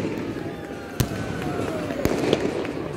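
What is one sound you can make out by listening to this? Fireworks crackle overhead in a shower of sparks.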